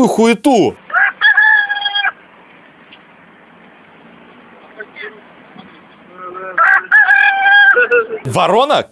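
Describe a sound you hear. A crow caws loudly.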